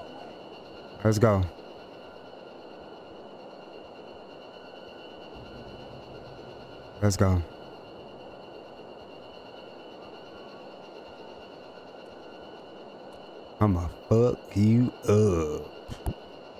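A young man speaks in short bursts into a close microphone, with animation.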